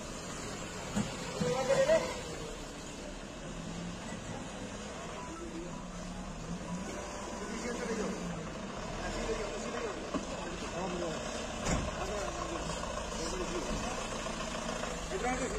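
A vehicle engine hums as it drives slowly closer.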